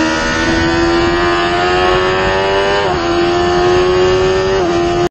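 Wind roars past the rider.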